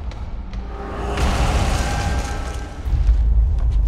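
A magical crackling surge bursts out loudly.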